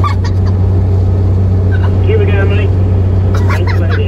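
A woman talks inside a moving vehicle.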